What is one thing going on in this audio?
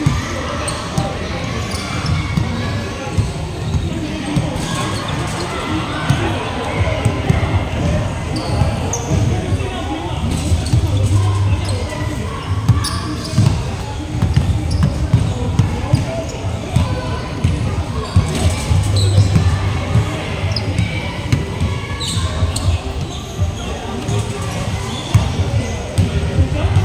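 Basketballs bounce on a hard floor in a large echoing hall.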